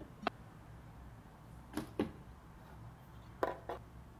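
A wooden box lid thuds shut.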